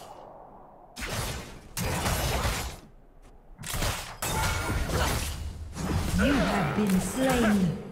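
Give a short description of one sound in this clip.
Fighting sound effects from a video game burst out loudly and keep clashing.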